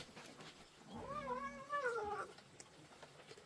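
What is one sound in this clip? A kitten meows.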